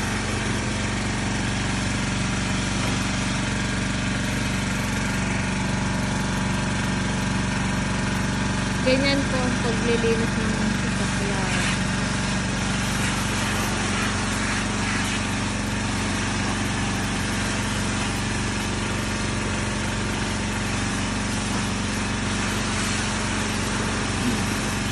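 A pressure washer motor hums steadily.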